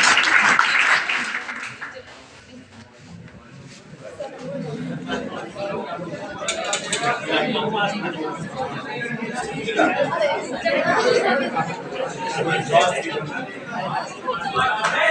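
A group of young men cheer and chatter loudly nearby.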